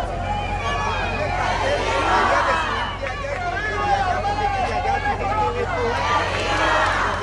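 A large crowd sings together outdoors.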